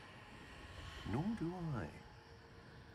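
A man answers briefly.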